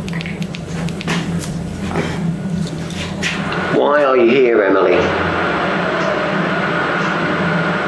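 A man speaks quietly nearby in a hushed voice.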